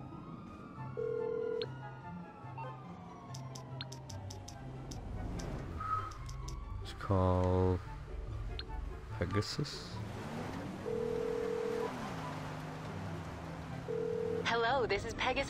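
A phone beeps as its buttons are pressed.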